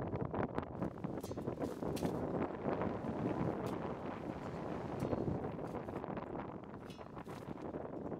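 A shovel scrapes through loose gravel and soil.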